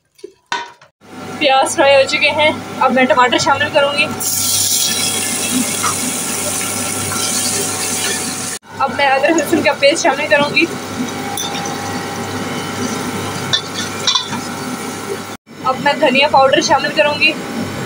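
Onions sizzle and crackle in hot oil.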